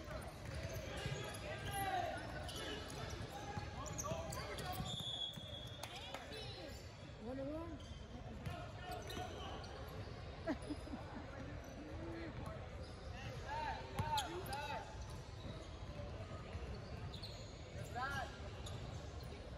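Basketball shoes squeak on a hardwood floor in a large echoing gym.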